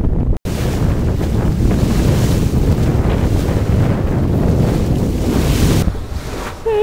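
Wind buffets loudly across the microphone.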